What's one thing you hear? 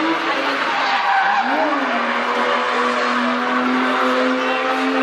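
Tyres screech and squeal on tarmac as a car drifts.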